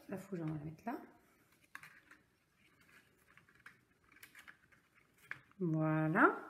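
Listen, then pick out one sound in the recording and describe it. Paper rustles as cards are handled.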